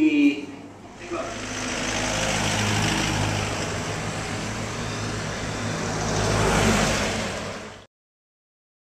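Traffic rushes past on the road.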